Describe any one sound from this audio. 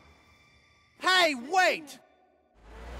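A man exclaims loudly in a rising and falling voice.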